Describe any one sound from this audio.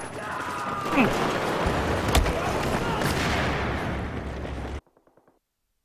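An explosion roars and crackles with fire.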